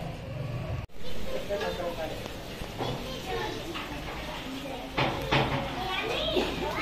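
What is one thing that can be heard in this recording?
Children and adults chatter together nearby.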